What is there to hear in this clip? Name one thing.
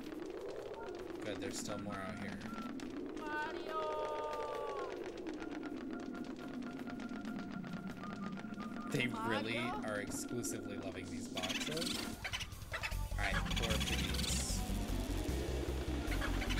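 Video game music plays steadily.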